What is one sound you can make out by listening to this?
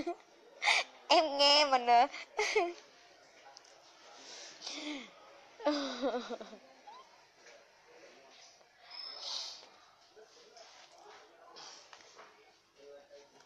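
A young woman laughs close up.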